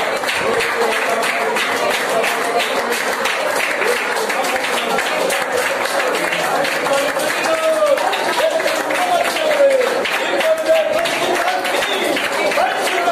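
A middle-aged man sings loudly with animation.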